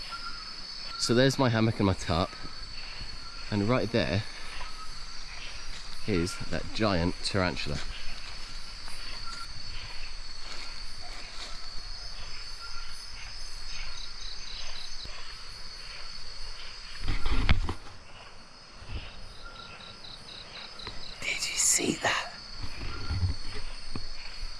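A man speaks close by with excitement, exclaiming in surprise.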